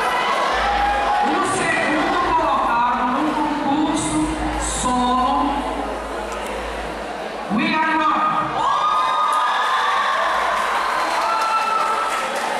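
A young man speaks with animation into a microphone, heard through loudspeakers in a large hall.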